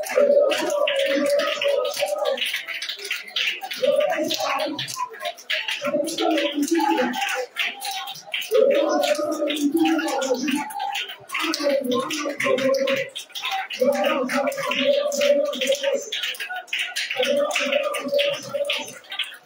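A crowd of people pray aloud together.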